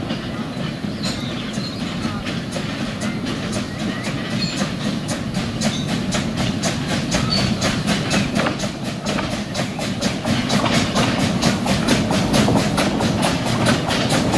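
Wheels click rhythmically on the rails.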